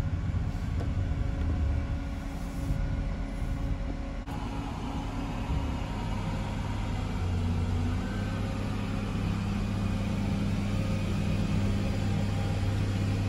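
A tractor engine rumbles steadily nearby and grows louder as it approaches.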